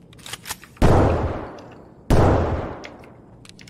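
Two loud gunshots boom and echo through an enclosed space.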